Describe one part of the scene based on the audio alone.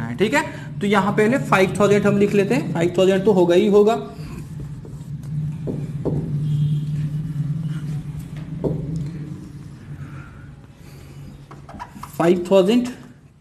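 A man speaks calmly and explains, close by.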